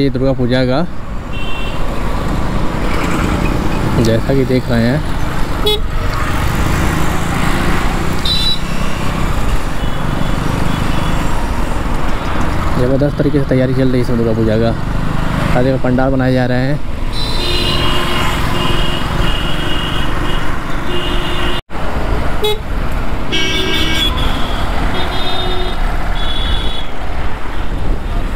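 Road traffic rumbles steadily around a moving scooter.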